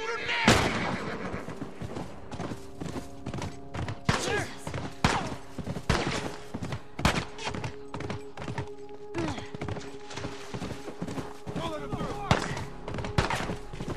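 A horse gallops, its hooves thudding on the ground.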